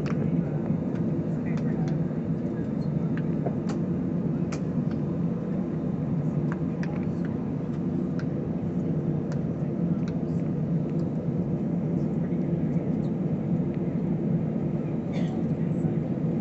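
A jet airliner's engines roar from inside the cabin as the plane rolls down the runway for takeoff.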